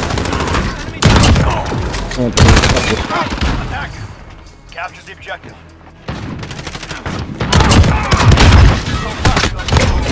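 Rifle shots crack in loud bursts.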